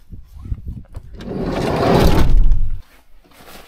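A vehicle door slides and shuts with a heavy thud.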